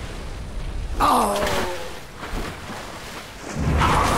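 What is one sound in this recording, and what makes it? Water splashes as a figure runs through shallows.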